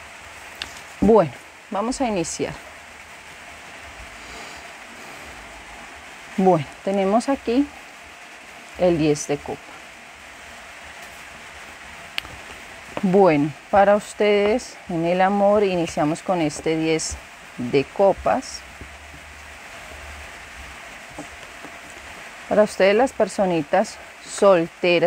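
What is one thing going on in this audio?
A woman speaks calmly and close to a microphone.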